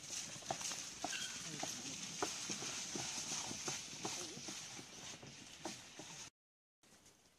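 A wooden cart rattles and bumps over rough ground.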